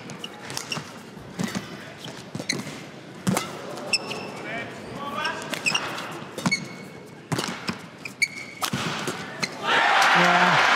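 Rackets strike a shuttlecock back and forth with sharp pops.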